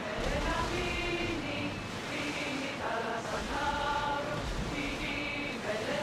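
Water splashes and rushes against the hull of a sailing ship.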